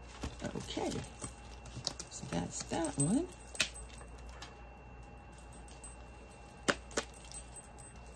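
A plastic sleeve crinkles and clicks in handling.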